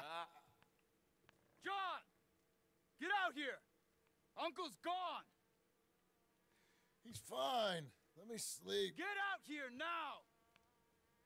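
A young man speaks close into a microphone in short bursts.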